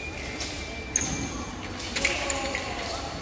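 Fencing blades clink against each other.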